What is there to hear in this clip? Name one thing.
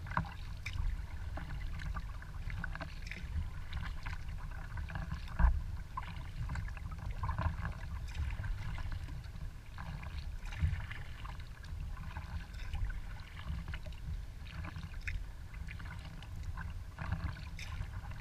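Water laps and splashes against the hull of a kayak as it moves.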